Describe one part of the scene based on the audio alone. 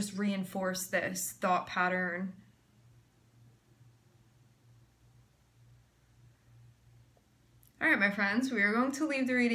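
A young woman talks calmly and close by, pausing in between.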